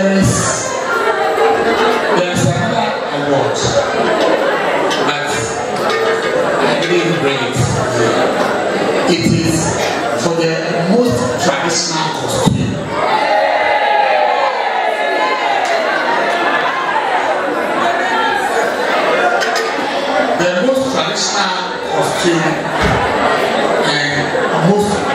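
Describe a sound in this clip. A man speaks animatedly into a microphone over loudspeakers in an echoing hall.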